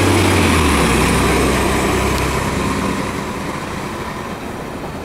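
Tyres hiss on the road as a bus drives off.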